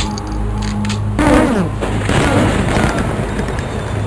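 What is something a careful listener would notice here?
A pistol fires quick shots.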